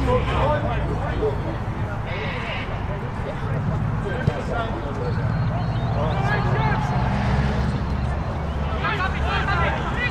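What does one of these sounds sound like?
Young players shout and call to each other across an open field, some way off.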